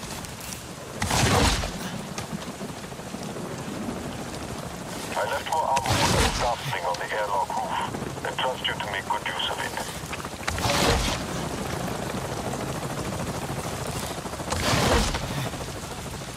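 Loud explosions boom nearby, one after another.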